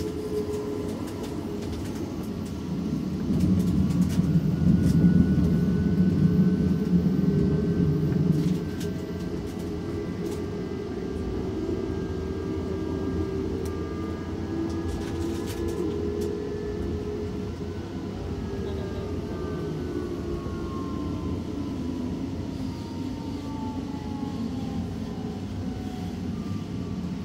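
A train rumbles steadily along the tracks, louder for a few seconds early on.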